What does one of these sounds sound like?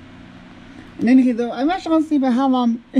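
A video game's cartoon character voice cries out cheerfully through a small tinny speaker.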